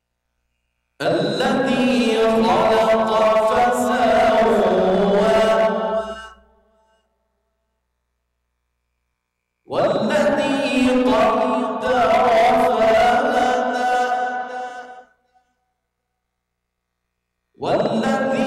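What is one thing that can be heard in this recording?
A man chants melodiously into a microphone, in long phrases with pauses between them.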